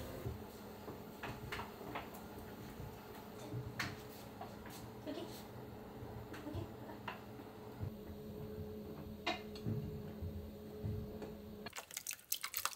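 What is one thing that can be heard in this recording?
A washing machine hums steadily.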